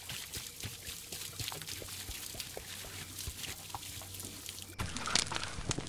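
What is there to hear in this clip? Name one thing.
A thick liquid bubbles and pops in a pot.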